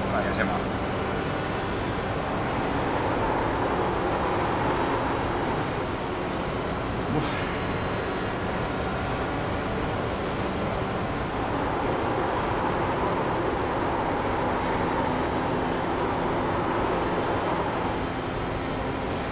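A racing car engine drones steadily at high speed.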